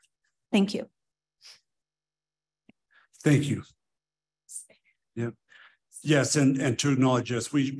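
A woman speaks on an online call.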